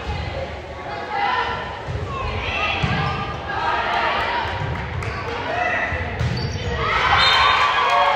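Young women players call out to each other on the court.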